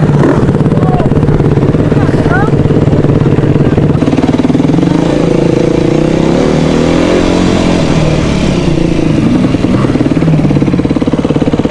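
A dirt bike engine roars close by, revving up and down as it rides.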